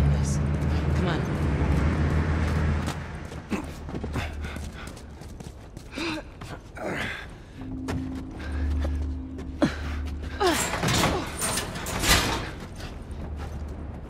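Footsteps walk over hard ground.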